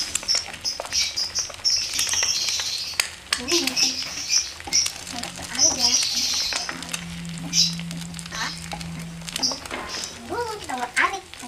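Eggs sizzle in a hot frying pan.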